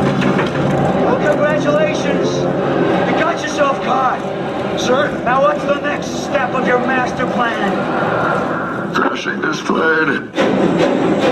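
A man speaks with intensity, close by.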